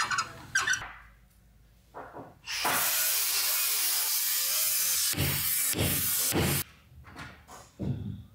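A caulking gun clicks as its trigger is squeezed.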